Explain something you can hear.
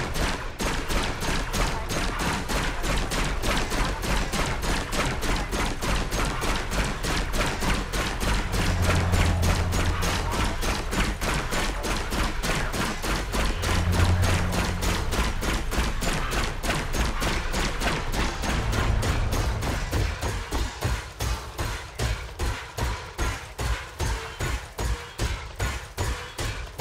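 Laser cannons fire in rapid, steady bursts.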